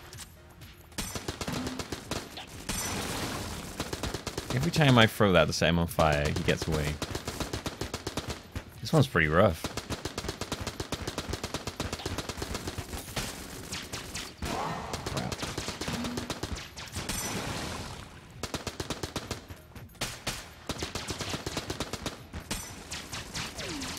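Rapid video game gunfire crackles in quick bursts.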